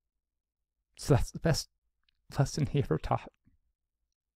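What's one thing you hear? A man speaks calmly and close into a microphone.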